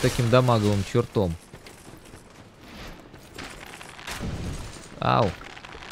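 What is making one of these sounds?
A sword swings and slashes through the air.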